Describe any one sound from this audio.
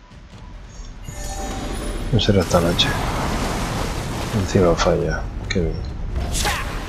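Magic blasts whoosh and crackle in a fight.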